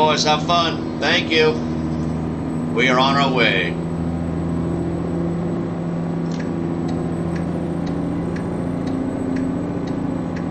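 A truck engine hums steadily at idle.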